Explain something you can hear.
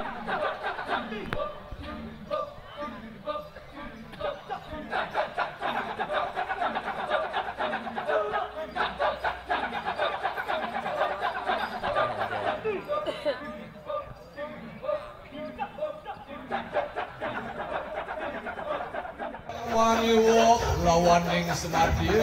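A large chorus of men chants loudly in a fast, rhythmic pattern outdoors.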